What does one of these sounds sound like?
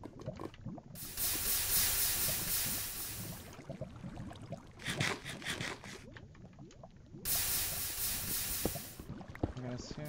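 Water pours and splashes in a rush.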